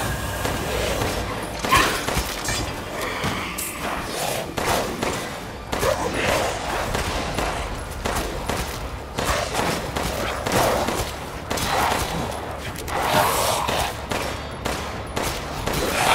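A pistol fires in sharp, repeated shots.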